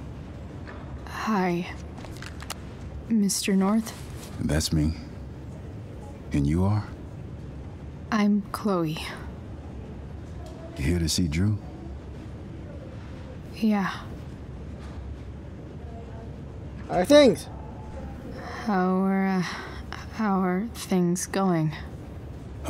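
A young woman speaks hesitantly and close by.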